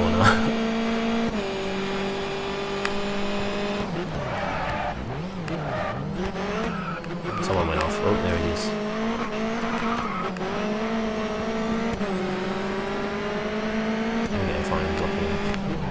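A racing car engine roars at high revs and shifts gears.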